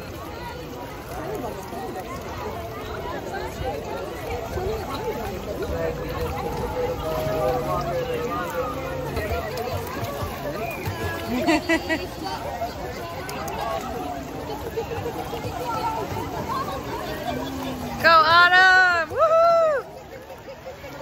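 Children and adults chatter and call out nearby.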